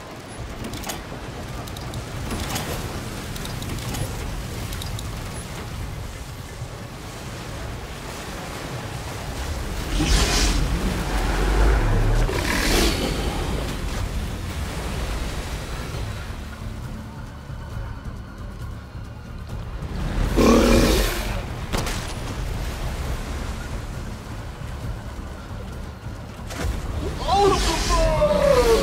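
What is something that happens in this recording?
Water laps and flows around wooden docks.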